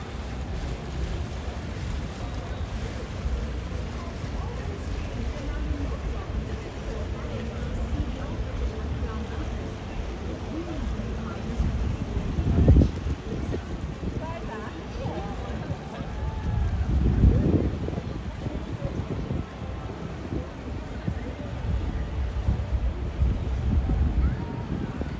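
A boat engine chugs low and steady on the water.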